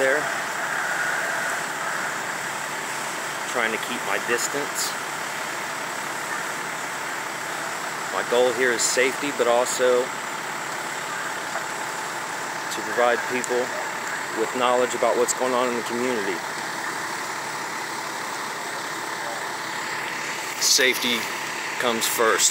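A large fire roars and crackles outdoors.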